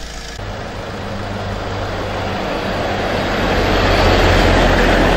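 A diesel tipper truck approaches and passes close by.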